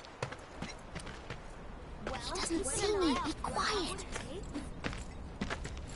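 Footsteps tread on a dirt path.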